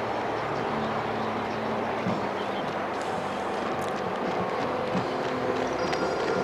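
Runners' footsteps patter on the road.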